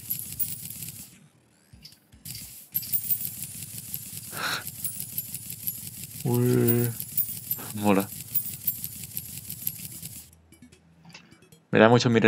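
Short game chimes pop as items are picked up.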